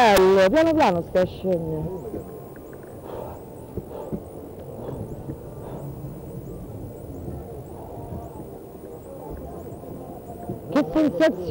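A young woman screams loudly up close.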